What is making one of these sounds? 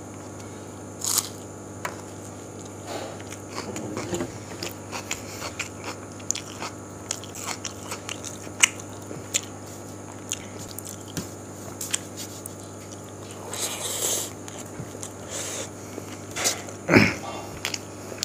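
A man chews food noisily with his mouth open.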